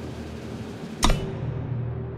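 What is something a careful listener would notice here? A sharp click sounds as a button is pressed.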